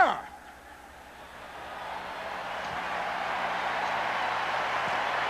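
A large crowd applauds and cheers in a vast echoing space.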